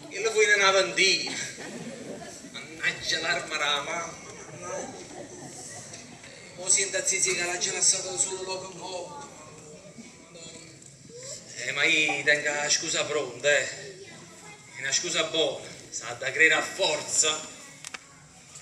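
A young man speaks with animation on a stage, heard through a microphone in a hall.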